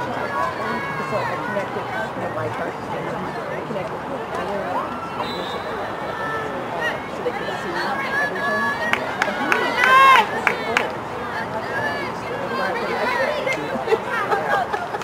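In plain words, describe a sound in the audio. Hockey sticks clack against a ball.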